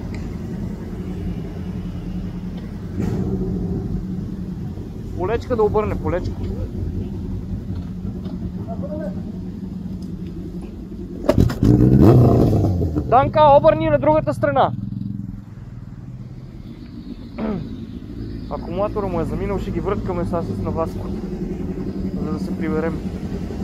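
A motorcycle engine idles and rumbles steadily close by.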